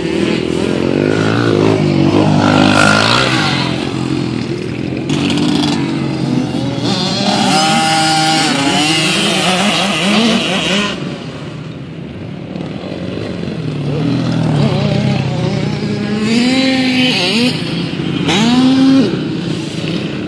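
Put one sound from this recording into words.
Small dirt bike engines whine and rev up and down nearby.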